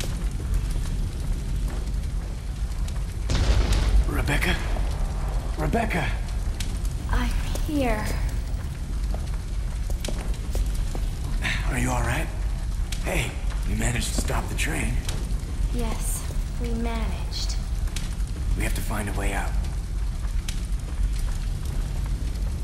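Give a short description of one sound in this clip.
A fire crackles steadily.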